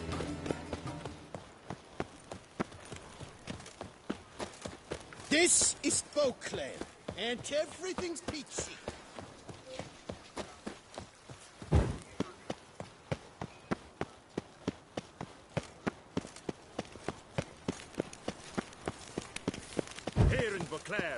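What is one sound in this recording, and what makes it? Footsteps run quickly and steadily on stone.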